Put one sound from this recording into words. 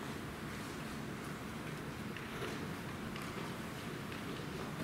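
A man speaks quietly at a distance in a large echoing room.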